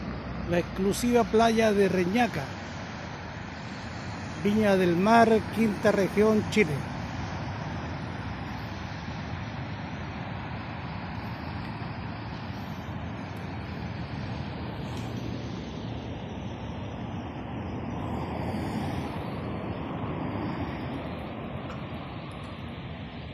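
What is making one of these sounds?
Ocean waves break and wash onto a beach in the distance.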